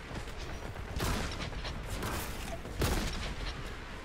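Loud gunshots boom.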